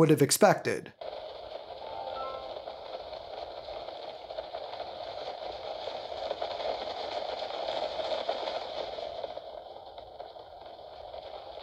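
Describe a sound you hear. Wind rushes steadily from a handheld game's speakers.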